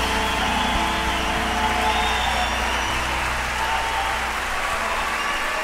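Musical instruments play tones that ring out and die away.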